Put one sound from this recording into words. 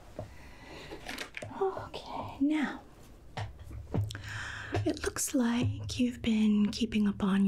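A woman speaks softly and closely into a microphone.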